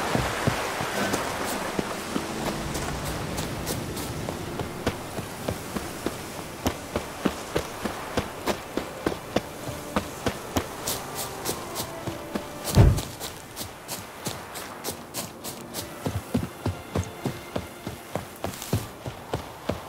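Footsteps run quickly and steadily along a dirt path.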